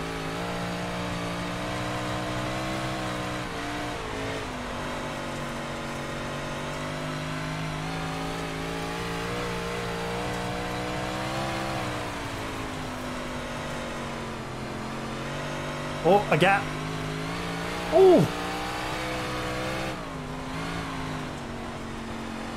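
A racing car engine roars steadily, rising and falling in pitch.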